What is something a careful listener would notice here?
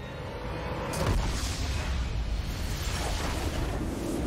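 A game's triumphant victory sound bursts out loudly and rings on.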